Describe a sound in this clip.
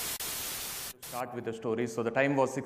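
A young man speaks calmly through a microphone.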